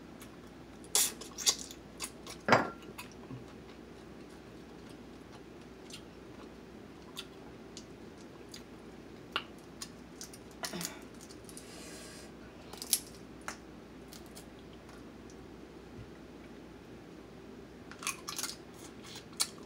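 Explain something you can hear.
A woman chews and slurps wetly close to a microphone.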